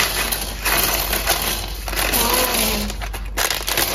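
Small plastic bricks clatter onto a table.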